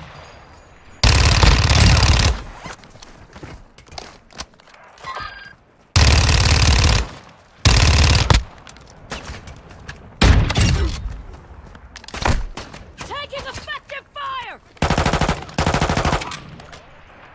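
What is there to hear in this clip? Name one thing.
Bursts of automatic gunfire rattle loudly.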